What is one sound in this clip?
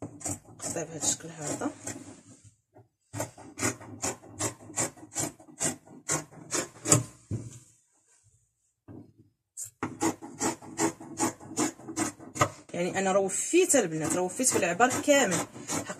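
Scissors snip through fabric in quick, steady cuts.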